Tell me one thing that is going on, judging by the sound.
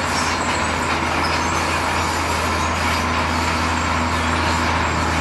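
A truck engine runs with a steady low rumble.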